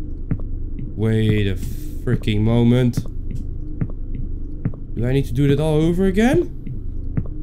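A young man speaks calmly into a microphone close by.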